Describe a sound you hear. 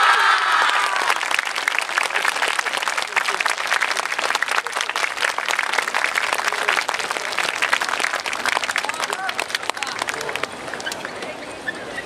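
Hand clappers clack rapidly in rhythm as a troupe dances.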